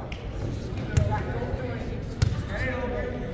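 A volleyball thumps as players hit it in a large echoing gym.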